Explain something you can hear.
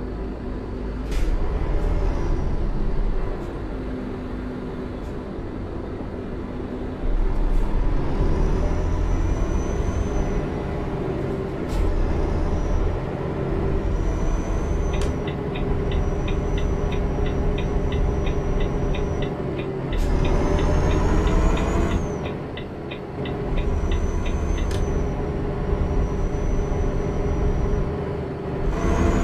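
A truck engine rumbles steadily and rises and falls as the truck pulls away and drives on.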